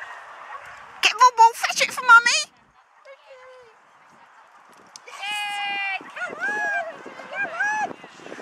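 A woman calls out to a dog in an excited, high voice.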